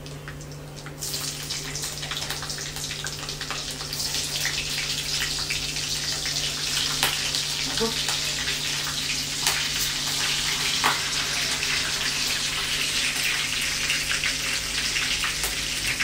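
Oil sizzles loudly in a hot pan.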